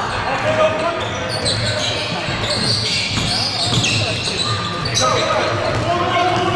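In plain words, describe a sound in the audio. Sneakers squeak sharply on a hardwood court in an echoing hall.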